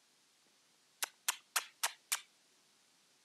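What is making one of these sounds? A parrot gives a quick series of five short, sharp calls nearby.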